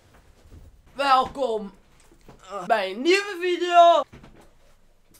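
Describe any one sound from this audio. A young man shouts loudly and playfully close by.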